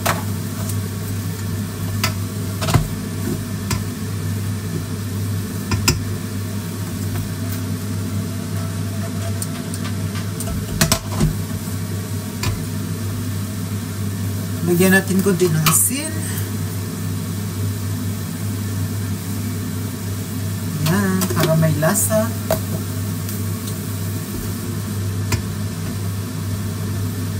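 Mushrooms sizzle softly in a hot pan.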